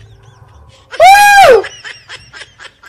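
A man squeals briefly in a high pitch.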